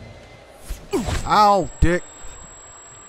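A young man shouts loudly into a close microphone.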